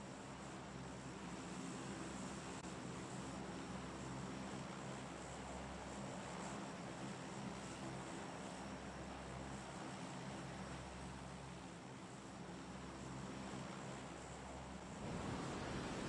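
Propeller engines drone steadily with a low hum.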